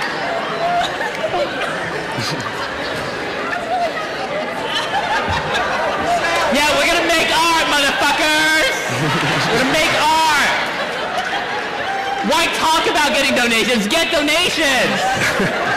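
A large crowd chatters and cheers loudly in a big echoing hall.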